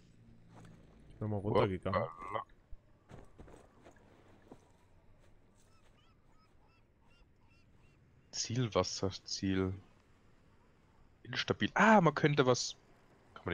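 Footsteps shuffle softly over stone and grass.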